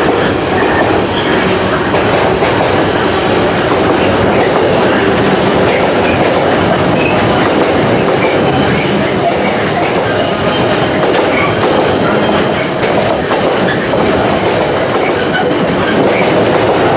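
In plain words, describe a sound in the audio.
A long freight train rumbles steadily past, close by.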